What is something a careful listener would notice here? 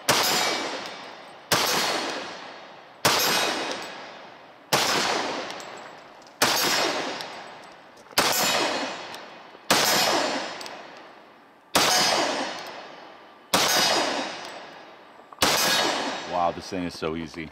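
A handgun fires single loud shots at a steady pace, each echoing away outdoors.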